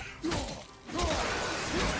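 Weapons clash and thud in a fight.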